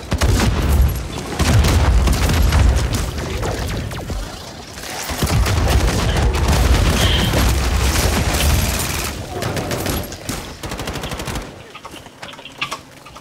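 A young woman talks through a microphone.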